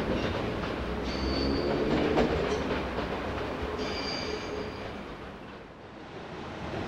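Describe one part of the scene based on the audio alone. A train rolls slowly over the tracks.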